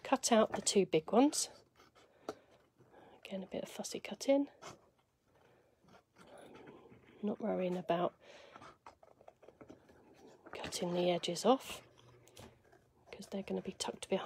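Scissors snip through thin card.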